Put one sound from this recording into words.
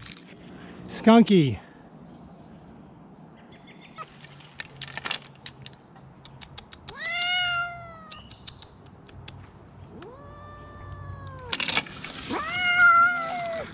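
A cat meows loudly and plaintively, again and again.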